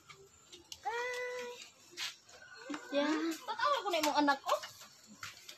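A young woman speaks with animation close by.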